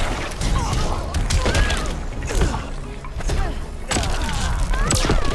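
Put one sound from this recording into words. Crackling energy blasts whoosh and fizz.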